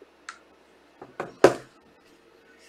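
Cards are handled and tapped down on a table.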